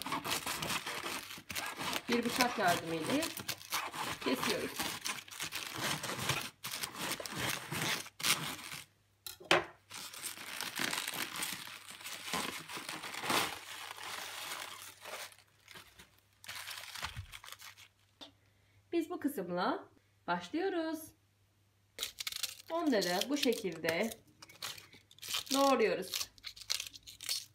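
A knife crunches and slices through a crisp cabbage.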